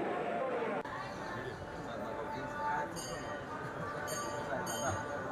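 A group of men talk and murmur nearby.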